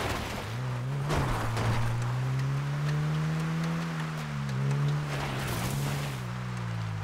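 Tyres crunch over loose dirt and gravel.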